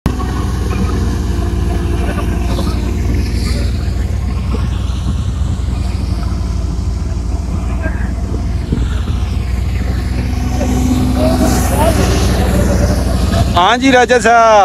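A threshing machine's engine drones steadily.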